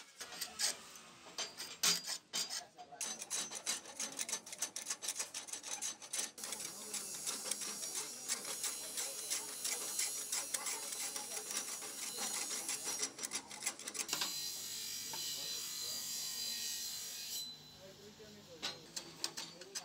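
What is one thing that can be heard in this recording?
A spokeshave shaves a wooden handle in quick, rasping strokes.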